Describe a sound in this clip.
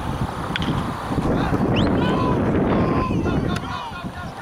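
A crowd of spectators cheers.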